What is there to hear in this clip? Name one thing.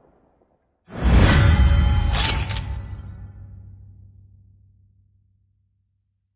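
A short victory jingle plays in a video game.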